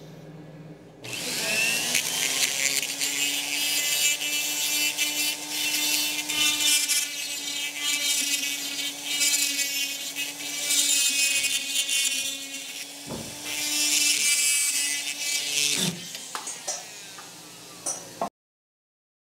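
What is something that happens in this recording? A high-pitched air grinder whines loudly against metal.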